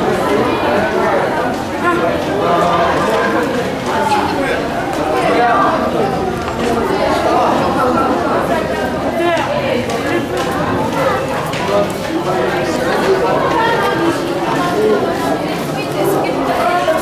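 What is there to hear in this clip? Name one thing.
A crowd of young women and men chatter all around in a busy, echoing room.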